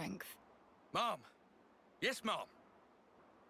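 Two young men shout a short reply together.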